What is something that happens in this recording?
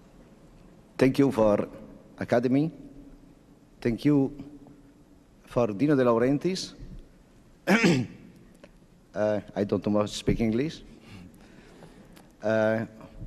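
A man speaks slowly and with feeling through a microphone.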